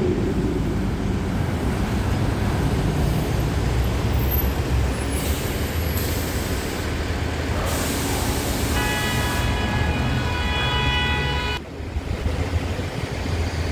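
A bus engine rumbles and idles close by.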